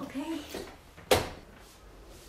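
A suitcase latch clicks shut.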